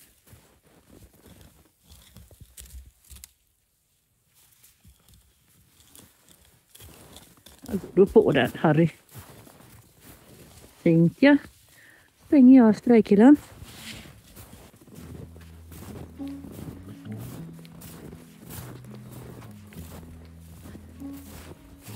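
Heavy hooves crunch through deep snow.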